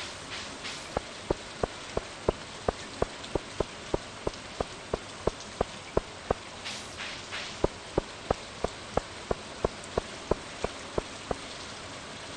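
Footsteps tap sharply and evenly on stone paving.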